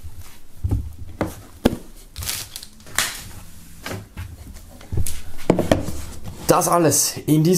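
Hands handle and tap boxes on a table with soft knocks and rustles.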